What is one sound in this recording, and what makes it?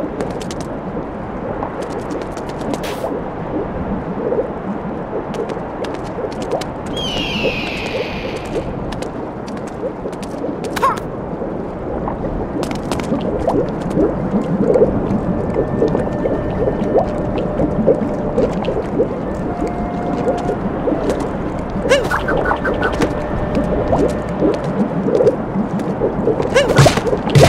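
Thick liquid bubbles and churns steadily.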